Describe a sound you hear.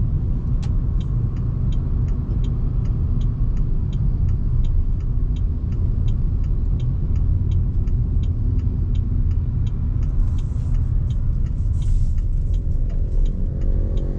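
A turn signal ticks at a regular pace.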